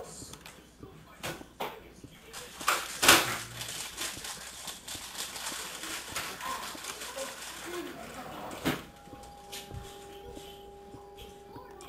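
A pickaxe taps and chips at stone in quick repeated knocks.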